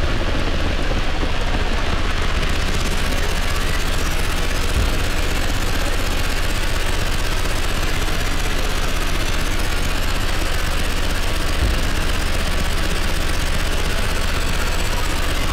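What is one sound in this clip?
A modular synthesizer plays dense electronic music with a deep, pulsing bass.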